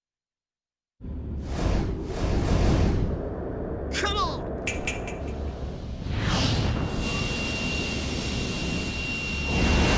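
A deep rushing roar of air sweeps past a falling figure.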